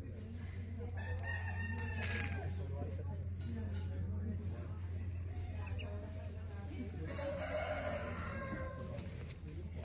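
A duckling peeps.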